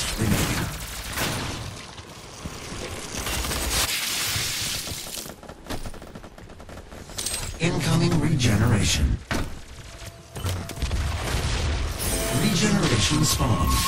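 Weapons fire and blasts go off in a first-person shooter game.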